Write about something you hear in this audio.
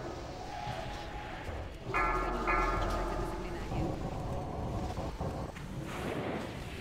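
Magic spells whoosh and chime amid battle clashes.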